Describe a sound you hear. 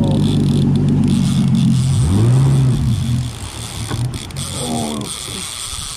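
Water splashes and sprays against the boat.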